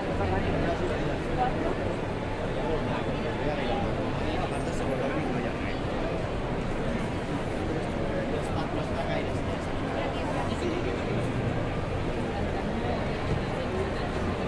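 A crowd of many people talks and murmurs all around in a busy indoor hall.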